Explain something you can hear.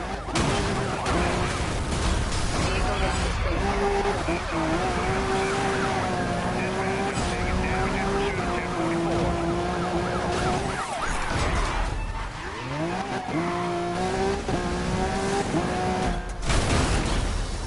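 A race car engine roars at high speed.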